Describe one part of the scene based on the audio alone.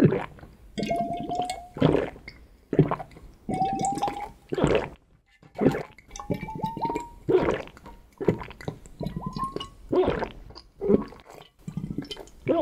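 A man gulps liquid loudly in repeated swallows.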